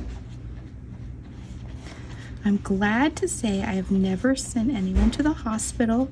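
A wooden handle presses and taps on paper.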